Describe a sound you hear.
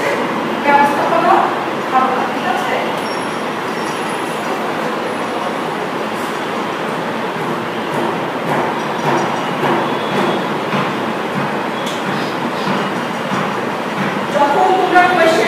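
Traffic rumbles steadily on a busy street below.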